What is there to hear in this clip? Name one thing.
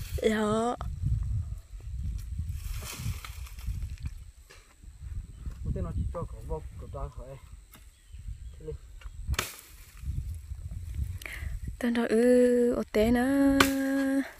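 A machete chops into branches with sharp thwacks.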